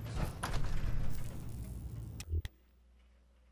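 A heavy metal door rumbles and grinds loudly.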